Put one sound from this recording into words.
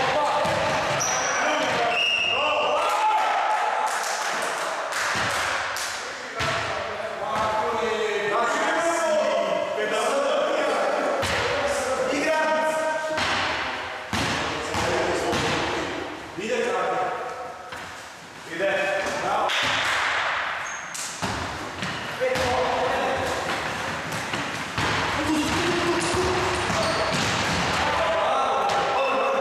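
Men shout and call out to each other in an echoing hall.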